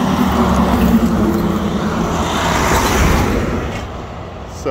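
A heavy truck's engine roars close by as it drives past, then fades away.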